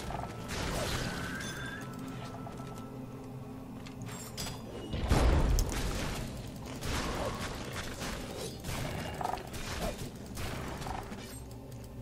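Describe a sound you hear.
Weapons clash and thud in a fierce fight.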